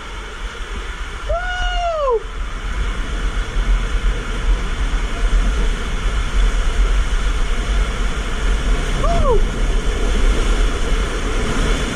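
Water rushes and splashes steadily inside an enclosed tube.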